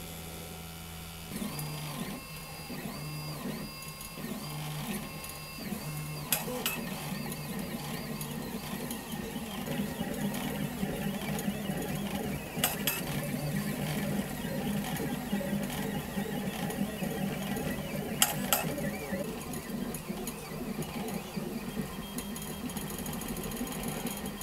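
A small cooling fan hums steadily.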